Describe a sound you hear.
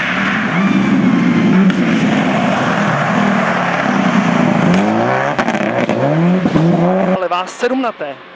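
A rally car engine roars loudly as the car speeds past.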